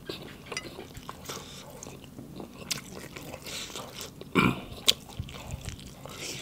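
A young man chews food noisily up close.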